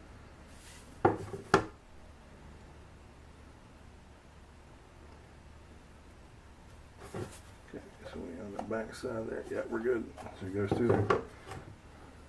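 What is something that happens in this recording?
A wooden board knocks down onto a hard surface.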